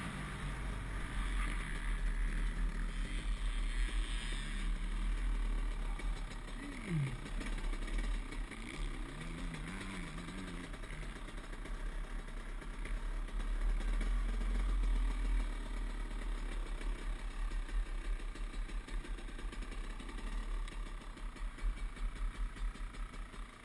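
A dirt bike engine hums and revs up and down close by.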